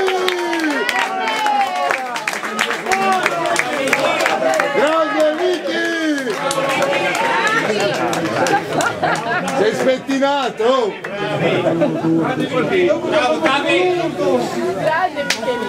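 Young men shout and cheer excitedly outdoors.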